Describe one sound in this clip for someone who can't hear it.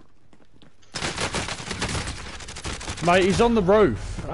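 Gunshots fire in rapid bursts close by.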